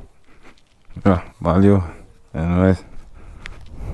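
A young man speaks loudly nearby.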